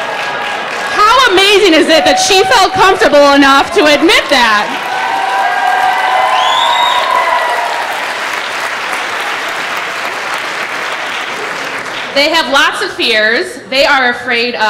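A crowd of young people cheers and whoops loudly.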